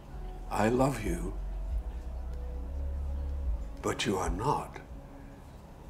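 An elderly man speaks in short, low phrases close by.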